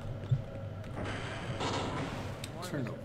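A heavy metal door slides open with a rumble.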